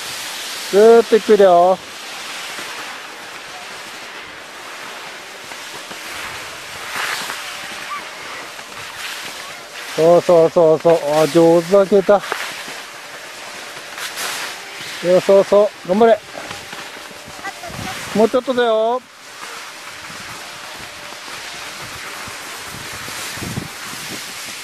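Skis slide and scrape over snow.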